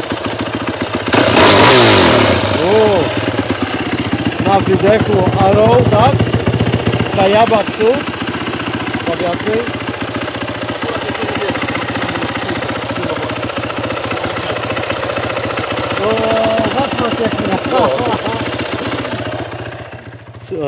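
A motorcycle engine idles steadily.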